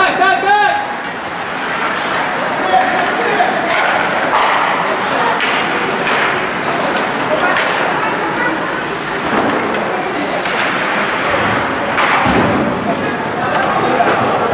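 A crowd murmurs and cheers in a large echoing arena.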